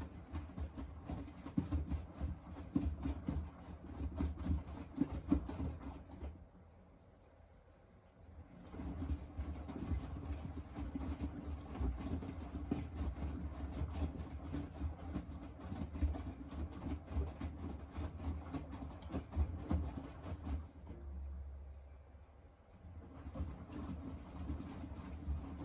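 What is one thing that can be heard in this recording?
A washing machine drum turns, tumbling wet laundry with soft thumps and sloshing water.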